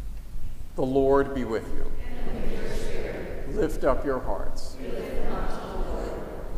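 A man chants in a sung voice through a microphone, echoing in a large hall.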